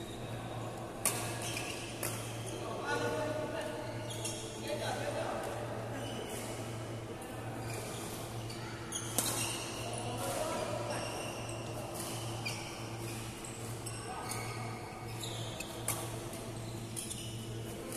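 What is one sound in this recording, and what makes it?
Voices of several young adults call out and chatter in a large echoing hall.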